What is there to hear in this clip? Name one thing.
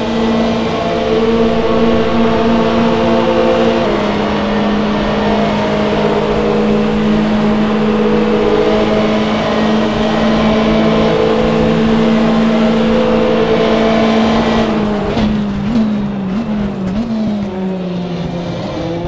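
A racing car engine roars at high revs, shifting up and then down as it slows for a corner.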